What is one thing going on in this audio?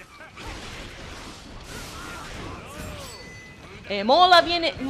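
Blows and blasts crash in a fight.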